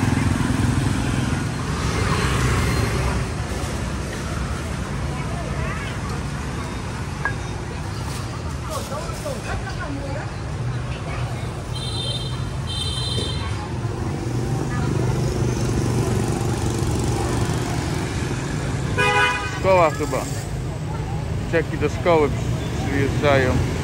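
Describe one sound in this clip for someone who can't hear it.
Motorbike engines hum and pass along a busy street.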